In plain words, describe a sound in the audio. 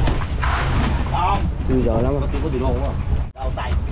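Plastic crates knock on a deck.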